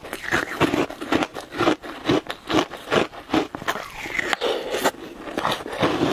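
A young woman crunches ice with her teeth close to a microphone.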